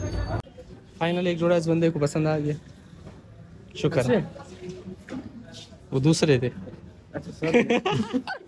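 A young man talks and laughs with animation close to the microphone.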